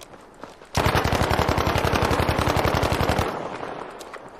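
A rifle fires in a rapid burst of loud shots.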